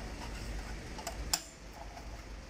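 A metal clamp clicks and clanks sharply.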